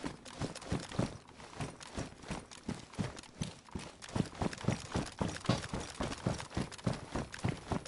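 Footsteps thud steadily on hard ground, quickening into a run.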